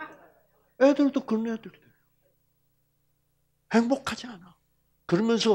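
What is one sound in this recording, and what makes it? An elderly man speaks with animation through a headset microphone, in short bursts with pauses.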